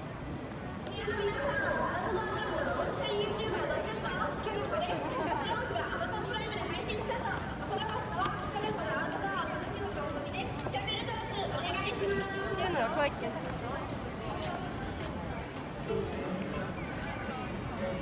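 A crowd of people murmurs and chatters nearby outdoors.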